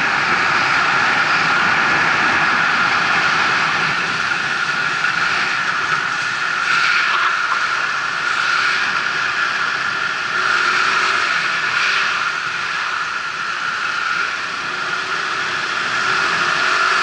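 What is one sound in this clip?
Wind rushes loudly past a moving motorcycle.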